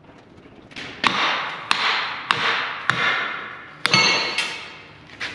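Metal clanks and rings as it is struck and handled.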